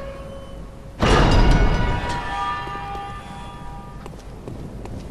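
A heavy iron gate swings open with a loud clang and a ringing creak.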